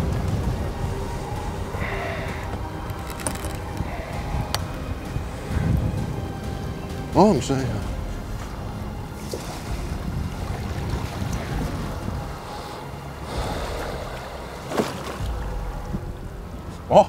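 Wind blows over open water outdoors.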